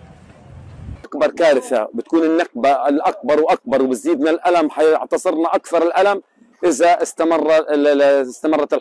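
A middle-aged man speaks earnestly, close by.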